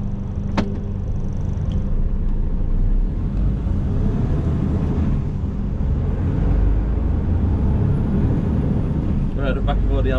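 Tyres roll on a damp road surface.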